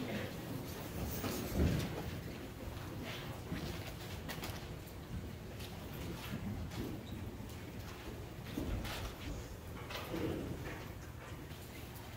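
A man speaks quietly into a microphone in a large echoing room.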